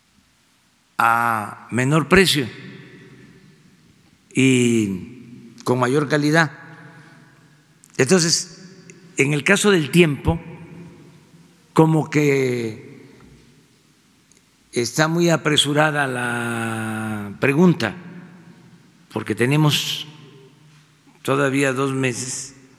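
An elderly man speaks calmly into a microphone, in phrases with pauses, in a reverberant room.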